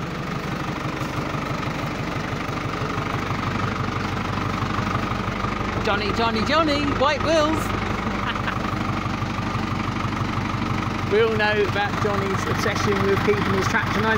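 A tractor engine idles nearby with a steady low chugging.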